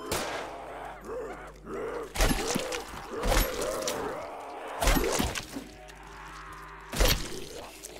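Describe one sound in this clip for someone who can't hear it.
Monsters groan and snarl in a crowd.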